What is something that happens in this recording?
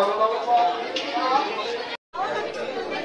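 A crowd of people chatters nearby.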